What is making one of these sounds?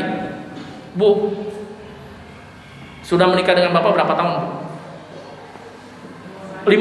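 A middle-aged man speaks with animation into a microphone, heard through a loudspeaker in an echoing room.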